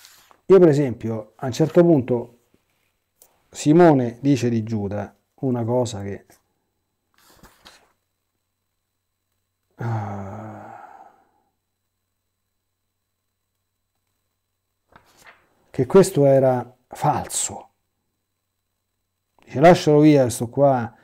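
A middle-aged man speaks calmly and slowly, close to a clip-on microphone, with long pauses.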